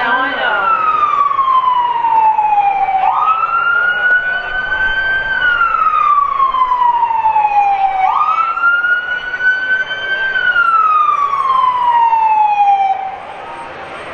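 A fire truck siren wails loudly, rising and falling.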